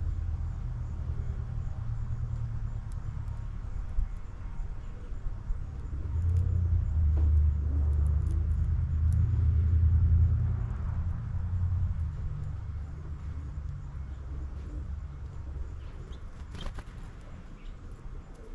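A small bird pecks at seeds on a feeder tray.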